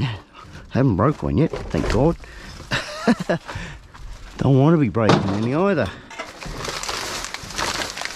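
Plastic garbage bags rustle and crinkle.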